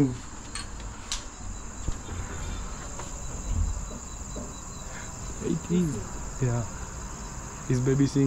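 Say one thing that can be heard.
A woman speaks nearby in short phrases.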